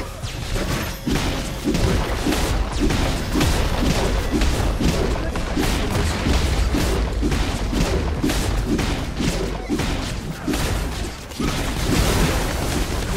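Magic blasts and weapon blows clash in a fast fight.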